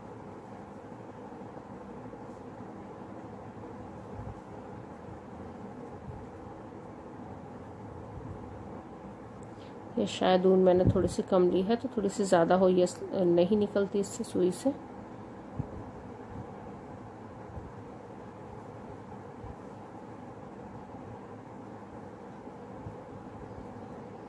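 Yarn rustles softly as it is pulled through knitted fabric.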